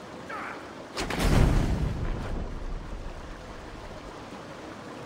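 A magic spell bursts with a loud boom that rumbles away.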